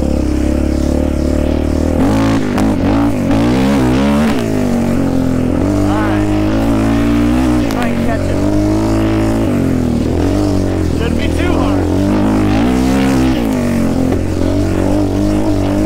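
A quad bike engine revs up and down loudly close by.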